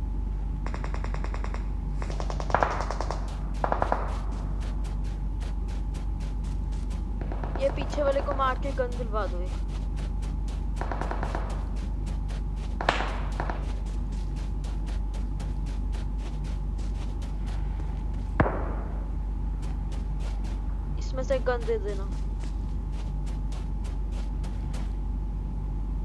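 Quick footsteps run over dirt and hard ground.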